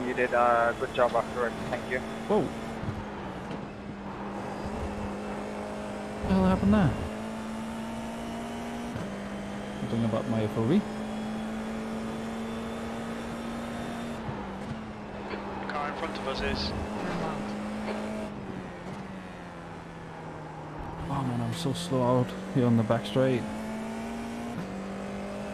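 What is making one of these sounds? A racing car engine drones steadily, dropping and rising in pitch with gear changes.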